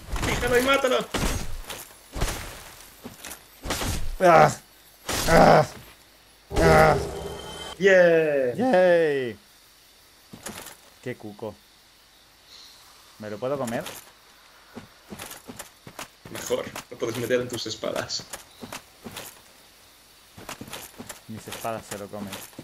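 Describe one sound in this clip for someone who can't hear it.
Armoured footsteps crunch through grass.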